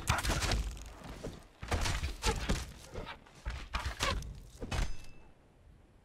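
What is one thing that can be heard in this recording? A hyena snarls and yelps close by.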